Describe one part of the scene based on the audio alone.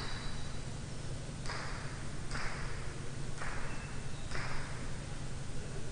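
A ball bounces on a hard floor again and again, echoing in a large hall.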